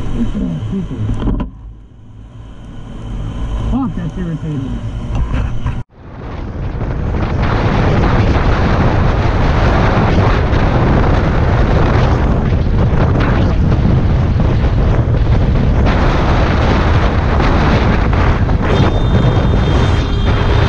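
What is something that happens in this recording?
A motorcycle engine hums and revs as the bike rides along a road.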